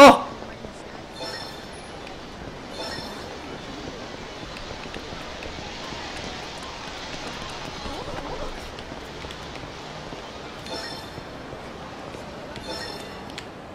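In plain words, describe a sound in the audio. A busy street crowd murmurs in the background.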